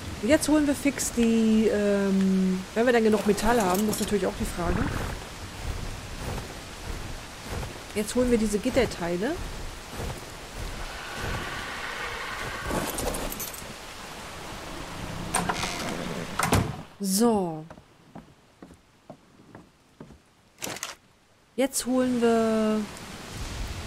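A woman talks into a close microphone with animation.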